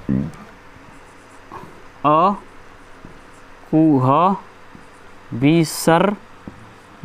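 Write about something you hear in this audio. A young man speaks slowly and clearly, pronouncing words one by one, close by.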